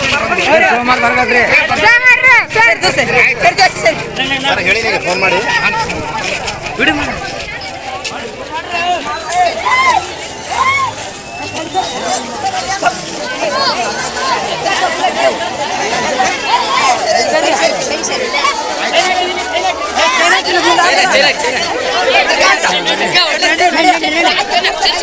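A crowd of young men and boys shouts and chatters excitedly close by.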